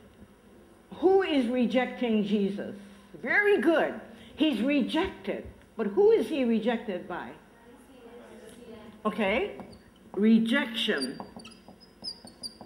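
An elderly woman speaks with animation.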